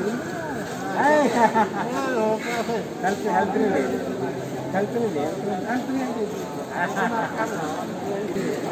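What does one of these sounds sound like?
Men talk to each other nearby.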